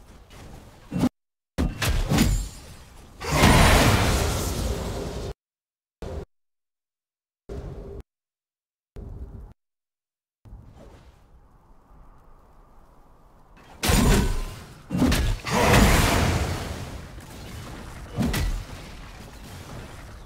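Magic blasts and clashing weapons burst loudly in a fight, then go quiet and flare up again.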